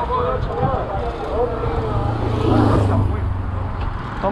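A motorcycle engine roars past.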